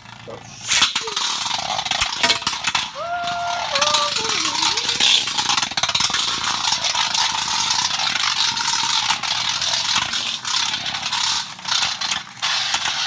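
Spinning tops clack sharply as they collide.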